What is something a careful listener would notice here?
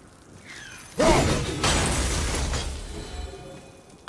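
A magical burst whooshes loudly.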